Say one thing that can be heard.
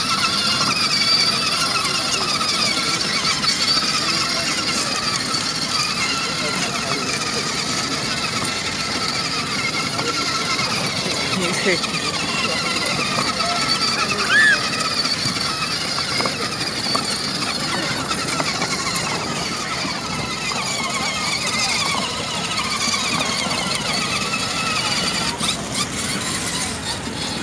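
A toy car's electric motor whirs as the car rolls along.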